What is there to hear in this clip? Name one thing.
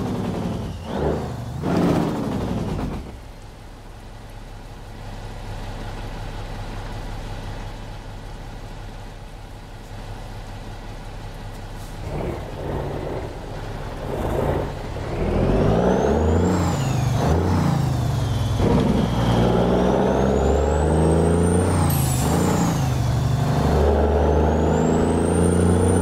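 A heavy truck engine idles with a deep, steady rumble.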